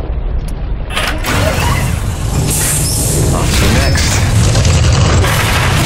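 A large machine whirs and rumbles loudly.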